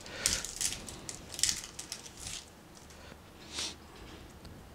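Paper wrapping crinkles and tears close by.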